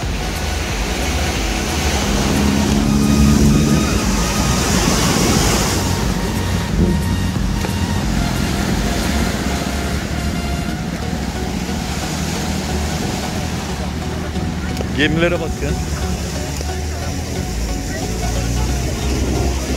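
Waves wash and splash against rocks close by.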